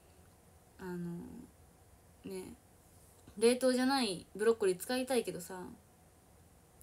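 A young woman speaks softly and casually close to a microphone.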